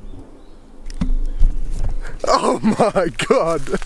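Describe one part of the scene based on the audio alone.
A young man laughs and talks close by.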